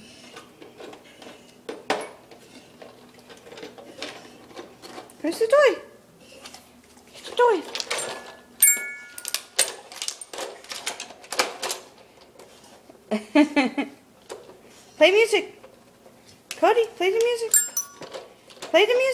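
A dog paws and bites at a plastic toy, making it clatter and knock.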